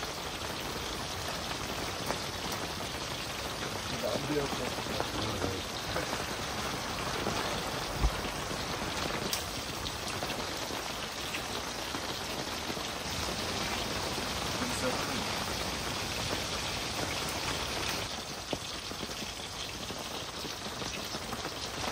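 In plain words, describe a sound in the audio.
Men talk calmly and close by.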